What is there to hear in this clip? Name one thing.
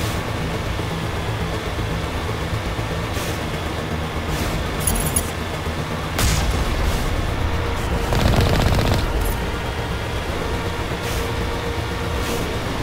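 A vehicle engine rumbles steadily.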